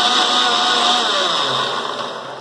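A mixer grinder slows and winds down.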